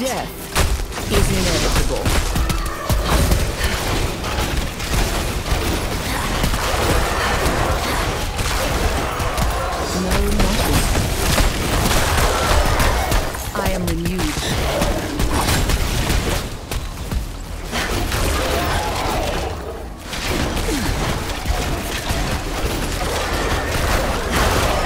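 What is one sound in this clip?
Spells and blows clash and crackle in a rapid fight.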